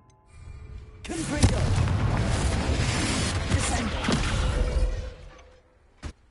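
Magic blasts roar and crackle loudly with burning fire.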